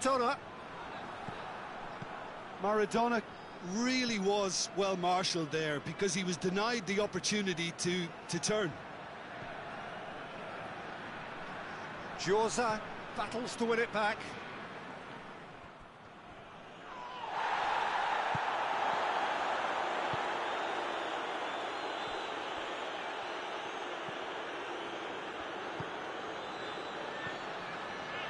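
A stadium crowd murmurs steadily and swells into a loud roar.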